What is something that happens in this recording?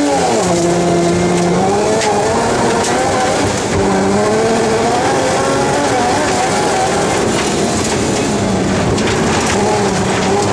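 Tyres crunch and hiss over packed snow and gravel.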